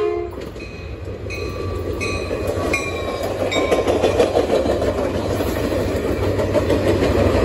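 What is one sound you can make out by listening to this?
A passenger train rumbles past close by, wheels clattering on the rails.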